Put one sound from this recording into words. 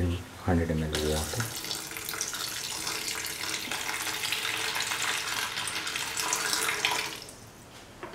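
Water pours into a pan of vegetables.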